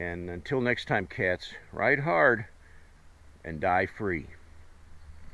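A middle-aged man talks close up, calmly and with animation.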